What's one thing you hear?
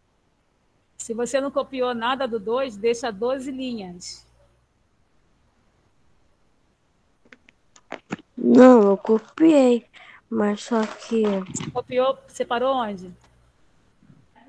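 A young girl speaks through an online call, in short bursts with pauses.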